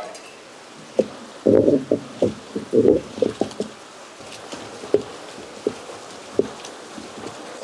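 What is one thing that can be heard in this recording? A heavy grinding stone knocks and rolls against a stone basin.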